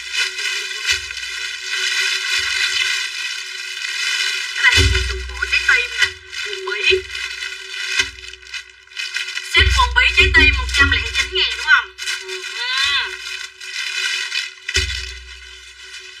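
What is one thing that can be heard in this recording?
Plastic bags and clothes rustle as they are handled.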